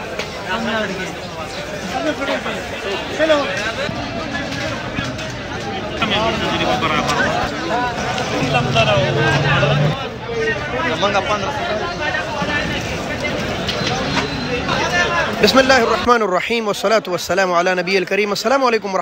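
Several men talk nearby in a lively crowd.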